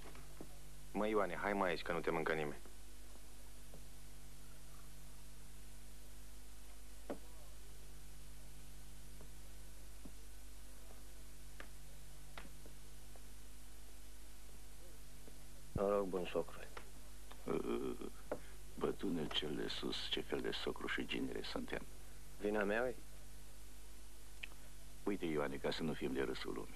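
Men talk calmly across a table, heard up close.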